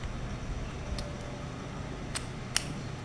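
A coin battery clicks and snaps into a small plastic holder.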